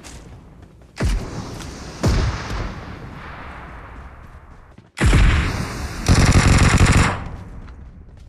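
A smoke grenade bursts and hisses loudly.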